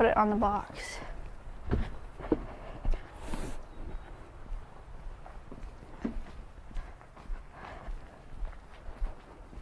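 Footsteps crunch on dry dirt and leaves outdoors.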